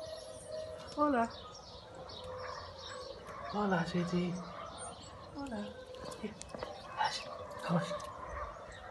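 Puppies whine and yelp up close.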